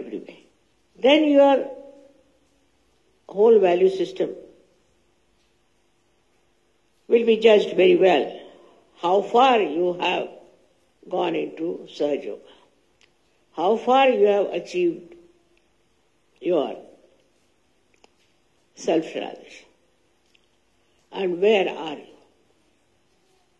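An elderly woman speaks slowly into a microphone, in short phrases with pauses, heard through a laptop speaker.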